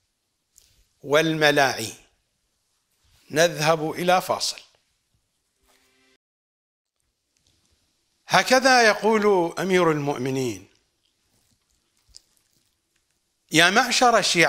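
A middle-aged man speaks with emphasis into a close microphone, in short bursts with pauses.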